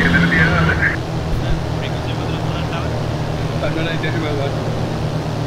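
A young man talks calmly into a close microphone.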